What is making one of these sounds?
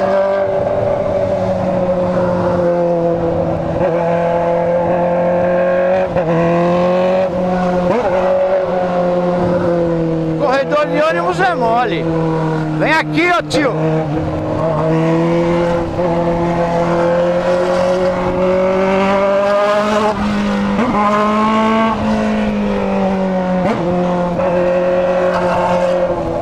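A motorcycle engine drones up close, its pitch rising and falling as it speeds up and slows down.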